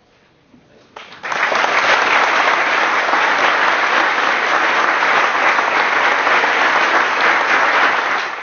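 A congregation applauds loudly in a large echoing hall.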